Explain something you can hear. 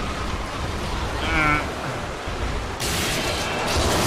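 A heavy mechanical door grinds open.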